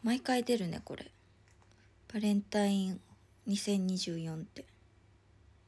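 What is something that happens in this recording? A young woman speaks close to a phone microphone in a soft, playful voice.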